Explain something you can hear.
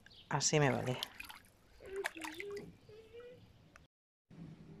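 Feet splash and swish through shallow water.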